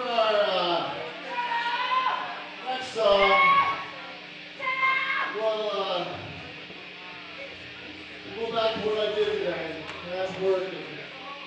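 A man speaks loudly through a microphone over loudspeakers.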